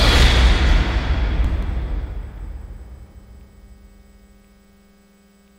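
A deep booming crash rings out and slowly fades away.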